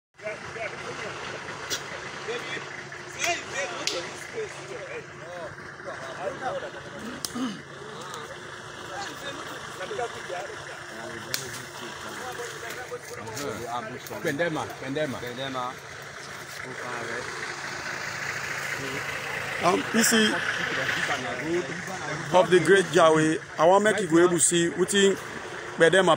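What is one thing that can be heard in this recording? Several men talk over one another outdoors.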